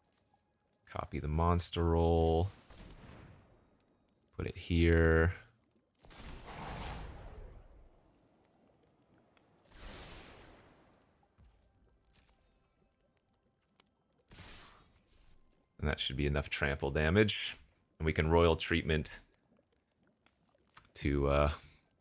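A man talks with animation into a close microphone, in short bursts.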